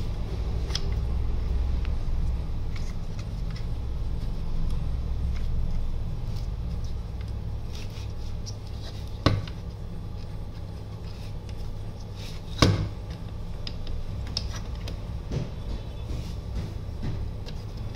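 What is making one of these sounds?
Plastic parts of a copier drum unit click and clatter as they are fitted together by hand.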